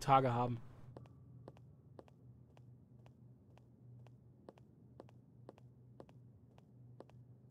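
Footsteps tap slowly and evenly on a hard floor.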